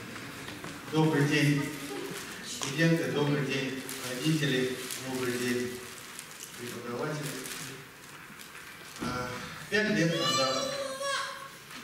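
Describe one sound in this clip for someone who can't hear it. A young man recites loudly and with feeling in an echoing hall.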